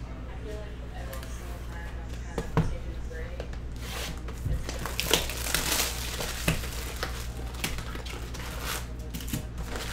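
Cardboard rustles and scrapes as a box is handled and opened.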